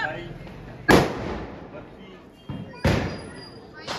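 A firecracker bangs sharply outdoors.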